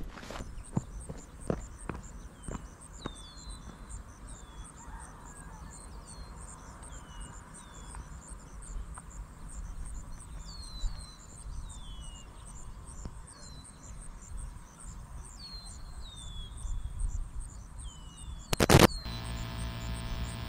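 Wind blows across an open hillside.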